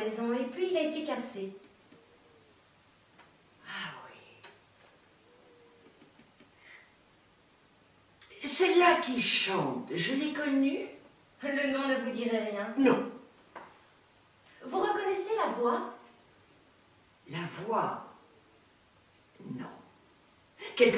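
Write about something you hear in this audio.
An elderly woman speaks with feeling, close by.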